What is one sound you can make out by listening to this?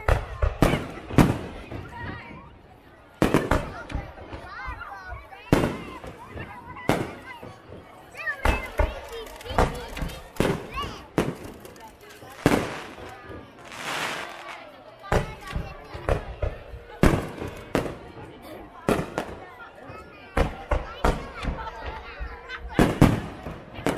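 Fireworks burst with loud booming bangs, again and again.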